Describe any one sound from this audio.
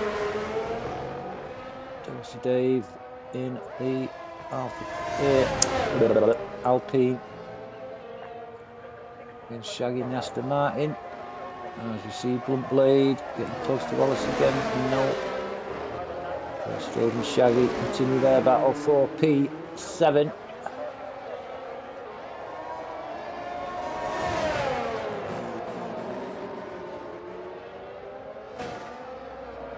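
Racing car engines roar and whine, shifting up and down through the gears.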